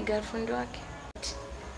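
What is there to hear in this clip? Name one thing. A woman speaks nearby in short phrases.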